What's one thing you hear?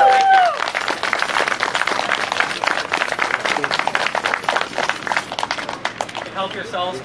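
A small crowd claps outdoors.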